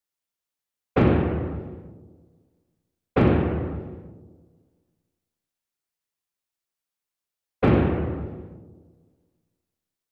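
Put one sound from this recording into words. A game piece clacks onto a board with a short ringing tail.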